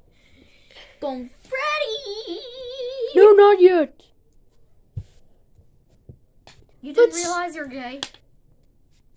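A young child speaks close by in a high, animated voice.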